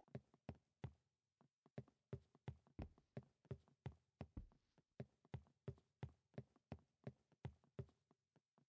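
Footsteps thud quickly and steadily on a wooden floor.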